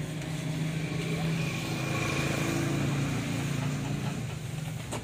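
A motorcycle engine hums as it rides past on a road.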